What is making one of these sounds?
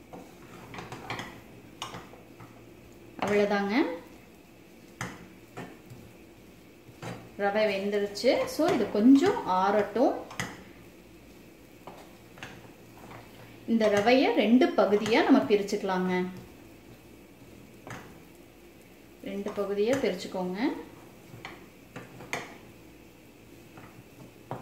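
A wooden spatula scrapes and stirs a thick mixture in a metal pan.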